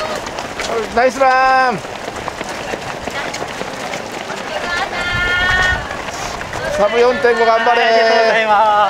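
Nearby spectators cheer and shout to passing runners.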